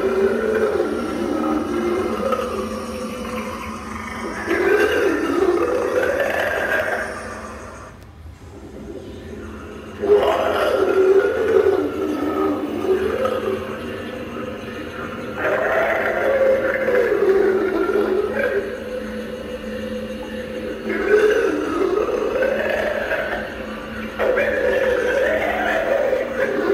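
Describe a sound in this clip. A monster prop groans and growls in a deep, eerie voice through a small speaker.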